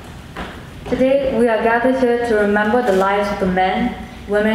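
Children sing together in a large echoing hall.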